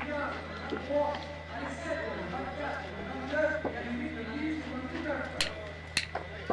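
Men talk nearby in low voices.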